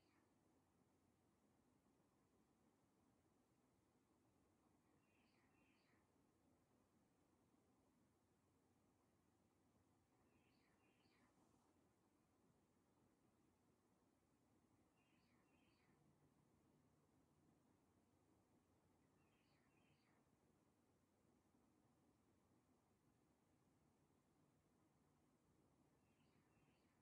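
An air conditioner hums steadily.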